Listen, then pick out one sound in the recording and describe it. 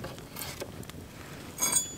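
A knife shaves and scrapes wood.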